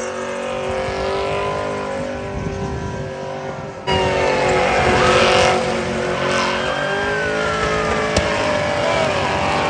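Tyres squeal loudly as a car spins on pavement.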